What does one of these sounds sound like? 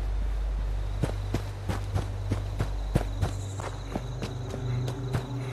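Footsteps crunch on wet ground.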